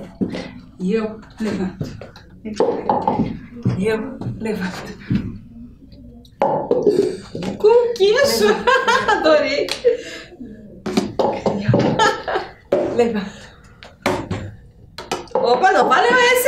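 A plastic cup clatters onto the floor.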